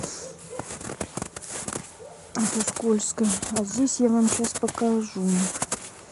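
Evergreen branches rustle as they are brushed aside.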